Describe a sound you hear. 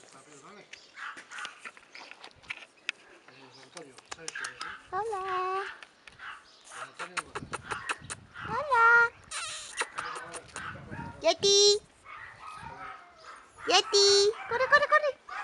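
Small dogs scamper and scuffle on dry dirt.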